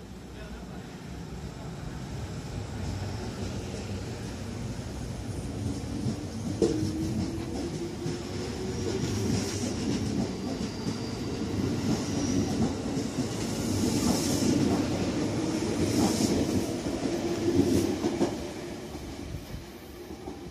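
A train rumbles and clatters past close by, its wheels squealing on the rails.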